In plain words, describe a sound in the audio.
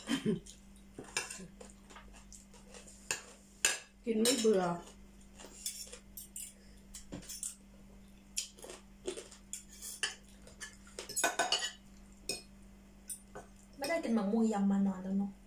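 Spoons and forks clink against plates close by.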